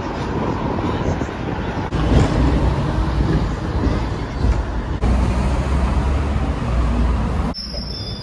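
A tram rumbles along its tracks.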